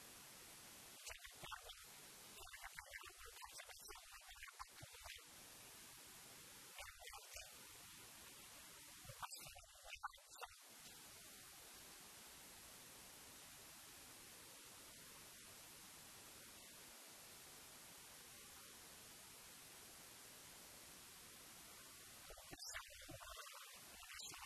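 Young men shout to each other in the distance on an open field.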